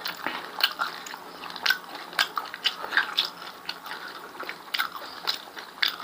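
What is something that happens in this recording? Fingers squish and scrape rice in a stone bowl.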